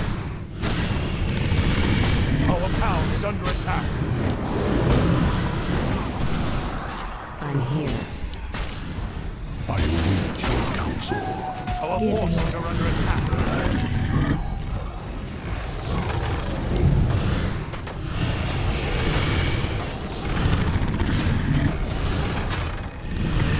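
Magic blasts crackle and boom in a battle.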